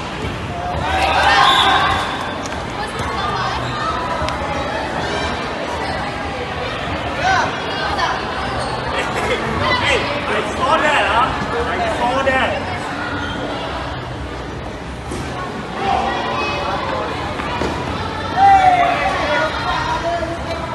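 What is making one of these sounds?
A crowd of young people shouts and cheers in a large echoing hall.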